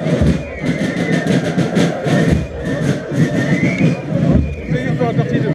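A brass band plays a lively tune outdoors.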